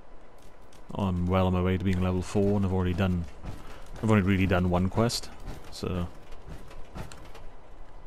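Heavy metal footsteps clank on the ground.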